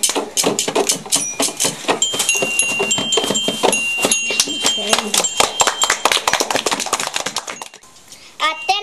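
A child taps a small drum.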